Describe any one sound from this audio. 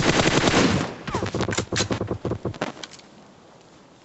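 Single gunshots crack from a game rifle.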